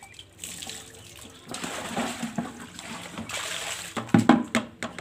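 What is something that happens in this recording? Water pours from a bucket and splashes on the ground.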